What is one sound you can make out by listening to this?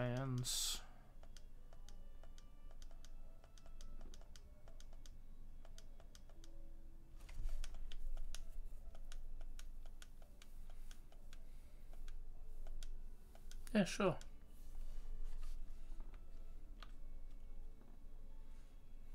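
Electronic game music plays steadily.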